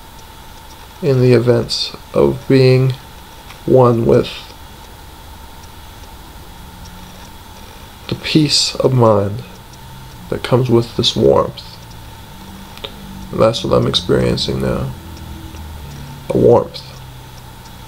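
A young man speaks slowly in short bursts, close to a microphone.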